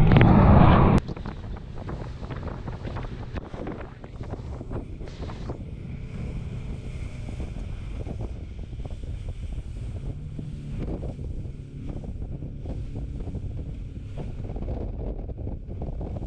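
A boat's hull slaps and splashes through choppy waves.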